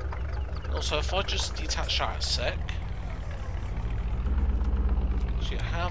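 A truck engine idles with a low, steady rumble.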